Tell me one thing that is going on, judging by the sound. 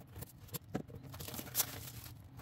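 Plastic wrapping crinkles as it is peeled off a box.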